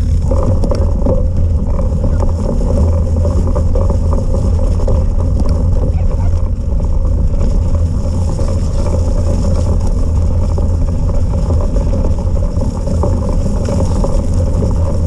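Wind buffets the microphone in a steady low rumble.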